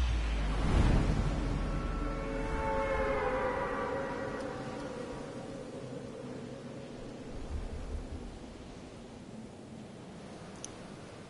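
A loud whoosh bursts out in a game, then fades into a rushing wind.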